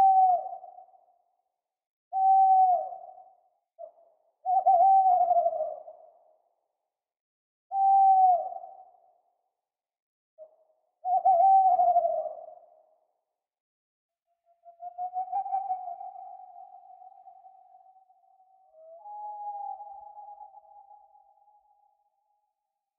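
An owl hoots in short calls, then in long wavering trills.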